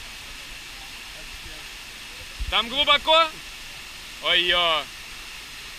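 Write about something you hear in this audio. A waterfall rushes and splashes steadily into a pool.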